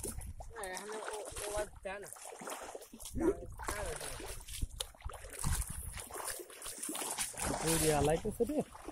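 Feet splash and slosh through shallow muddy water.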